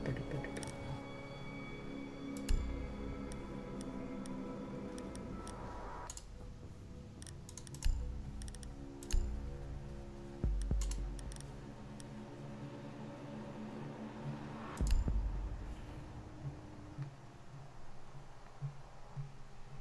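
Soft, steady music plays throughout.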